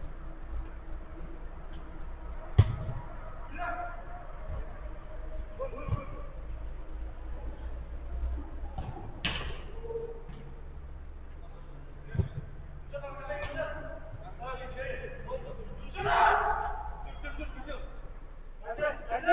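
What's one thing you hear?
Men shout and call to each other from a distance.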